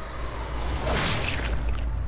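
A gunshot bursts out with a sharp crack.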